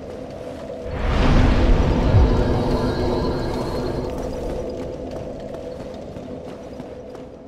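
A fire flares up with a deep whoosh and then crackles softly.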